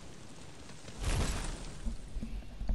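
A loud blast of crumbling debris bursts close by.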